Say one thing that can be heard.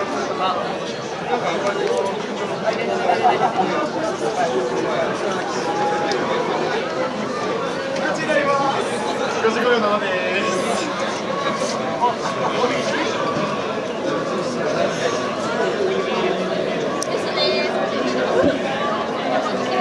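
Swimmers splash and churn the water as they race.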